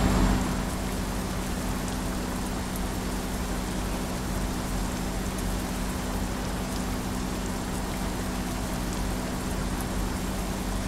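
A heavy diesel truck engine drones while cruising.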